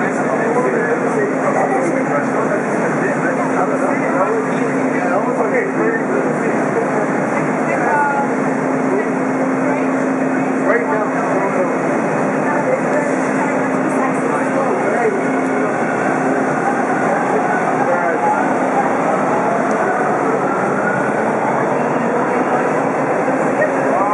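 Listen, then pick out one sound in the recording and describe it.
A subway train rumbles and rattles along the tracks, echoing in a tunnel.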